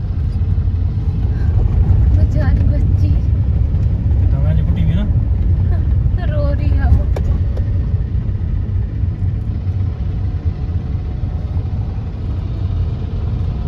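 A car engine hums steadily from inside as it drives along a road.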